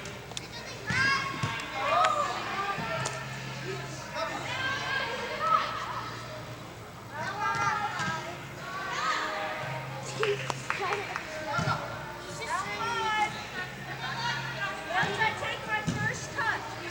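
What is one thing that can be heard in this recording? A soccer ball is kicked with dull thumps.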